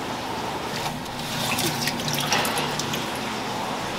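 A metal ladle scrapes and stirs in a pot of broth.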